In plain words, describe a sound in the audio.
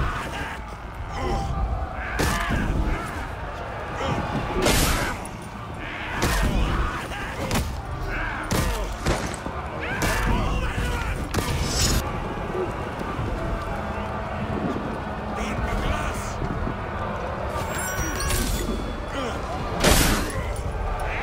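Weapons clash and strike with sharp metallic impacts.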